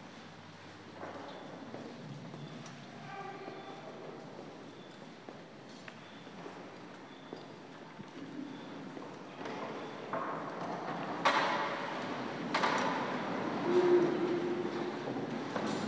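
A group of people sing together in an echoing room.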